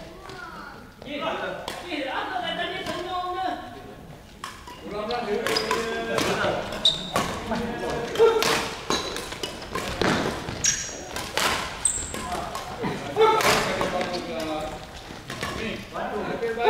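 Men talk and call out across a large echoing hall.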